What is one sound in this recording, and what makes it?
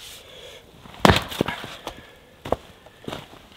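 An axe splits a log with a sharp crack.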